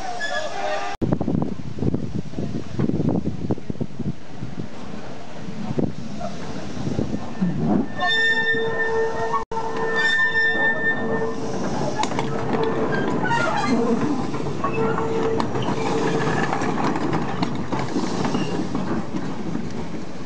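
A steam locomotive chugs and rumbles close by.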